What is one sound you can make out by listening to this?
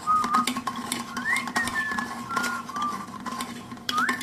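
A stick stirs thick paint in a can with soft scraping and knocking.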